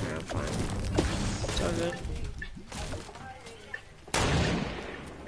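A gun fires a single blast.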